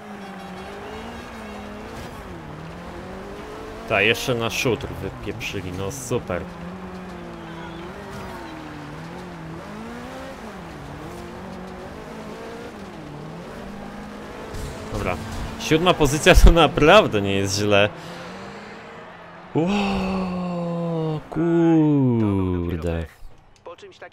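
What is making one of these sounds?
A racing car engine roars steadily and shifts in pitch.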